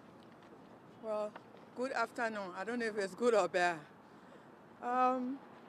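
A woman speaks with feeling into microphones close by, outdoors.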